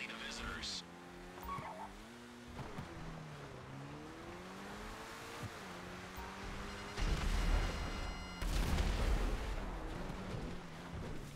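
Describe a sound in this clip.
A sports car engine revs and hums, rising and falling in pitch.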